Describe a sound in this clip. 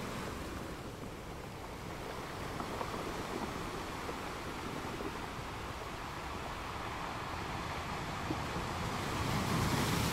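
Ocean waves crash and roll against rocks, swelling louder toward the end.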